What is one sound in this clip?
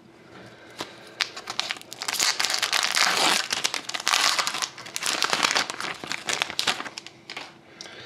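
A foil wrapper crinkles and tears as it is ripped open.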